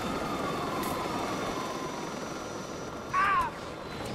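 A small toy robot whirs as it drives about.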